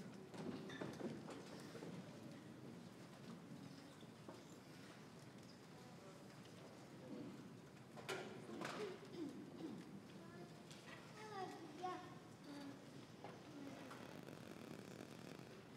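Audience members murmur and talk quietly in a large echoing hall.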